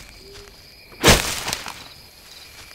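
A blade swishes through the air with a sharp whoosh.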